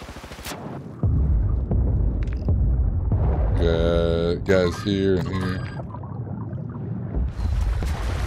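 Muffled water rumbles underwater.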